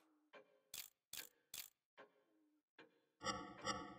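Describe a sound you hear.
A metal dial clicks as it turns, ratchet by ratchet.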